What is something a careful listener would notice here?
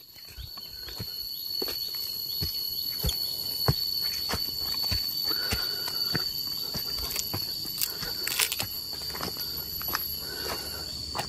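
Footsteps crunch steadily over dry leaves outdoors.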